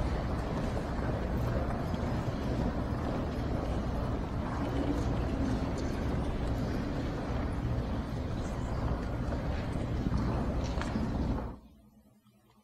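An organ plays in a large echoing hall.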